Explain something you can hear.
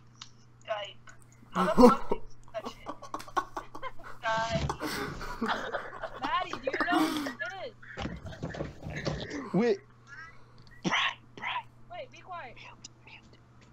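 A teenage boy talks and laughs with animation over an online call.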